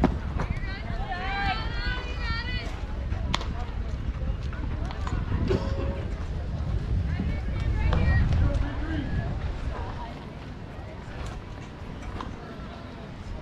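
Young girls shout and cheer in the distance.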